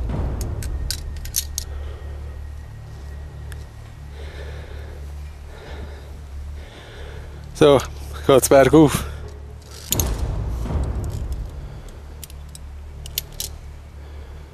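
Metal clips click and clank against a steel cable.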